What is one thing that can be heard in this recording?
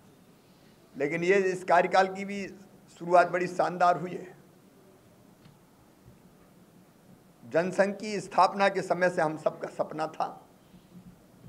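A middle-aged man speaks firmly into microphones, in short bursts with pauses.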